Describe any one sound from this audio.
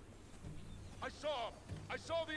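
A young man speaks briefly into a headset microphone.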